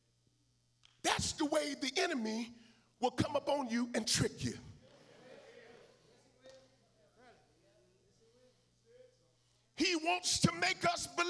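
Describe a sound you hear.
A man preaches loudly and passionately into a microphone, his voice echoing through a large hall.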